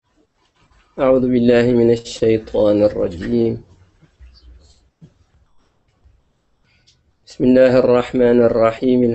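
An elderly man speaks calmly into a microphone, in drawn-out, chanting phrases.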